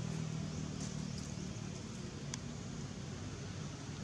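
A monkey's feet rustle softly over dry leaves.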